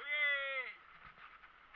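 A young man shouts cheerfully close by.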